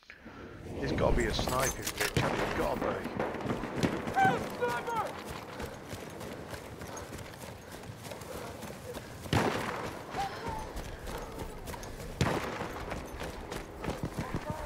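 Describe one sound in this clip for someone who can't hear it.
Gunfire and explosions boom across a battlefield.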